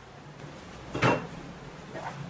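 A heavy cleaver is set down on a wooden table with a sharp knock.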